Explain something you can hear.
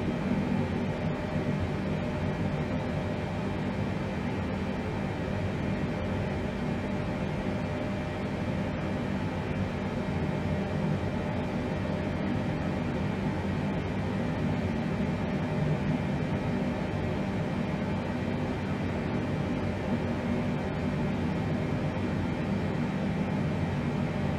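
A jet airliner's engines drone steadily.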